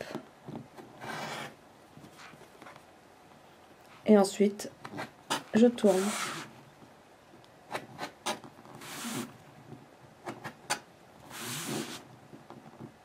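A rotary blade slices through fabric on a cutting mat in short, rasping strokes.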